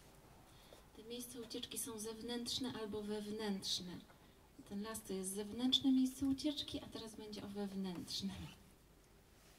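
A woman sings through a microphone in a slow, sustained voice.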